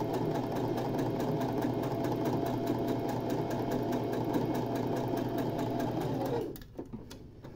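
A sewing machine runs with a fast, steady whir and then stops.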